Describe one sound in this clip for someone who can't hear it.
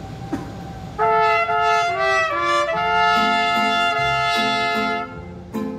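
Guitars strum along with a band.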